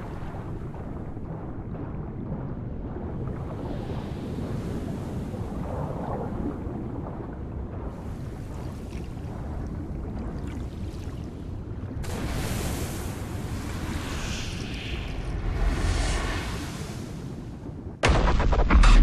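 Muffled underwater water sounds swirl steadily.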